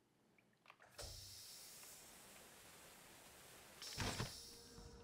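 A vent bursts open with a rushing hiss.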